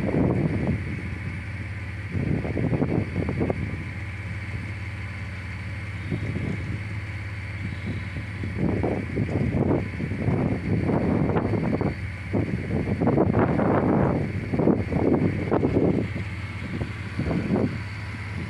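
Wind gusts in open country, buffeting loudly in bursts.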